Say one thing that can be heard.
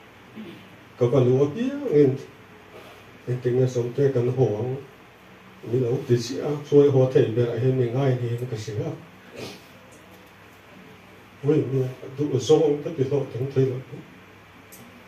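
A man speaks calmly into a microphone through a loudspeaker in an echoing room, pausing between phrases.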